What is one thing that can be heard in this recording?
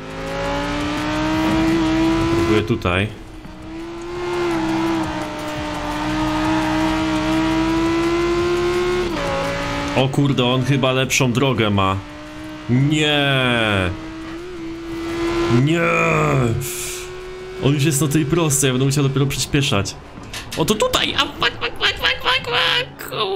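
A sports car engine roars at high revs, rising and falling sharply as gears shift.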